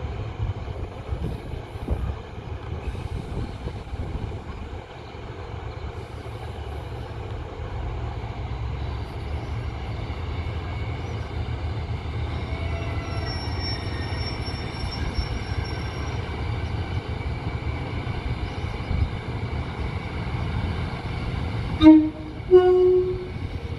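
A diesel multiple unit idles.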